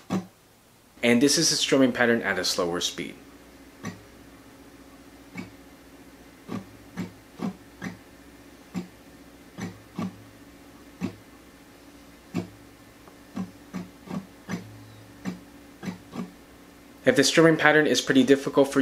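An acoustic guitar is strummed in quick bursts of chords.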